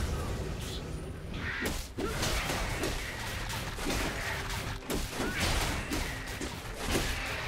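Magic blasts whoosh and crackle in quick bursts.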